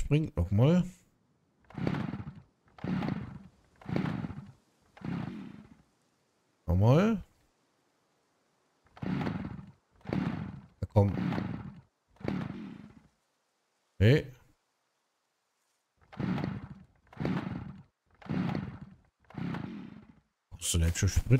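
An axe chops into a tree trunk with heavy thuds.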